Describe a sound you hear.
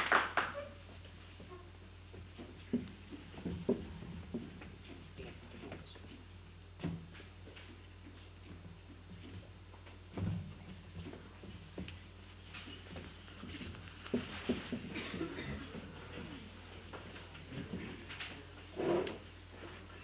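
Footsteps thud nearby.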